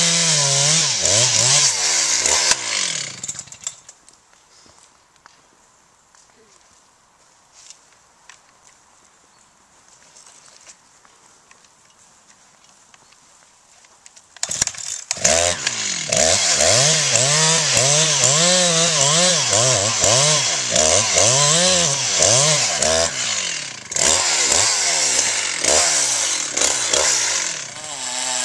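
A chainsaw roars loudly, its engine rising and falling as it cuts into a tree trunk.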